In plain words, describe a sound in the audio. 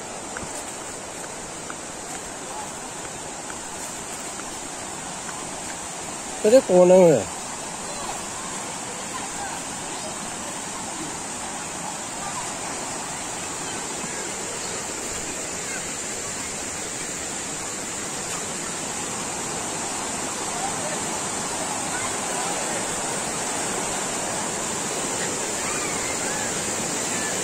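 A stream rushes over rocks, growing louder.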